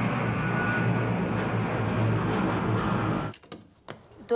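A jet aircraft roars overhead.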